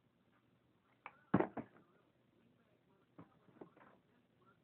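A plastic bottle thumps down on the floor.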